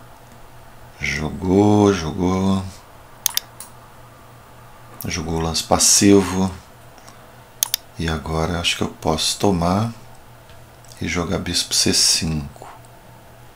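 An older man speaks calmly into a close microphone, in short bursts.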